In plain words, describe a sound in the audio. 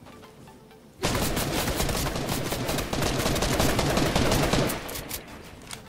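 A pickaxe chops repeatedly at a tree.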